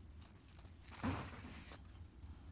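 A metal vent grate clanks as it is pulled off.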